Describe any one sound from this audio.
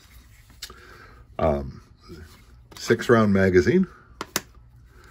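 Small metal parts click sharply as a pistol and its magazine are handled.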